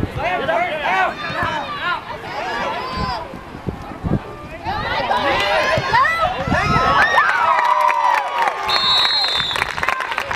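Spectators cheer and shout loudly outdoors.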